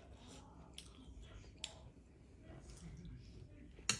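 A young woman slurps noodles close to a microphone.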